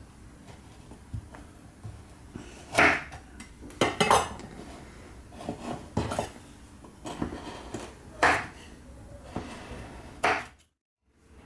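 A knife chops through chocolate and knocks on a wooden board.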